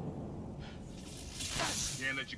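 A burst of energy crackles and booms.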